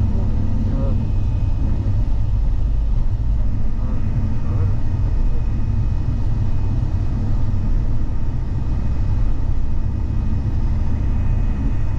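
A car engine rumbles steadily as the car drives along a road.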